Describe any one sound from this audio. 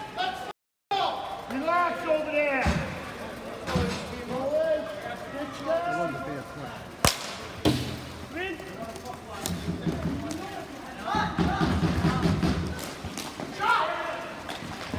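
Young players shout and call out across an open court.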